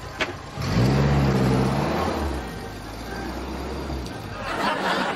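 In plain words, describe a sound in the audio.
A small car engine hums as the car pulls in and stops.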